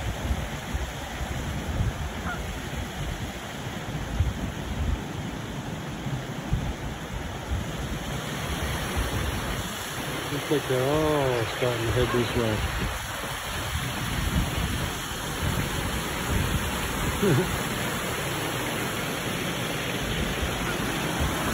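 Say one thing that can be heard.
Wind gusts across a microphone outdoors.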